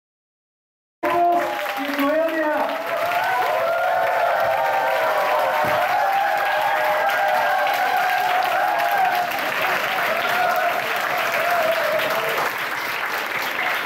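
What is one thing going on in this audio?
A large crowd claps loudly in an echoing hall.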